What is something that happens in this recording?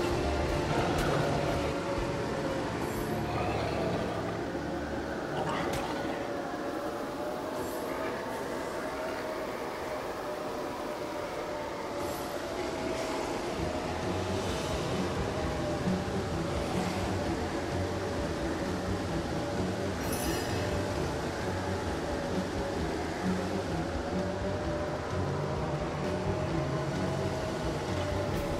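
Steady game music plays throughout.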